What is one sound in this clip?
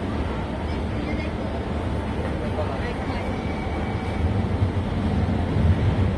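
A train approaches with a growing rumble.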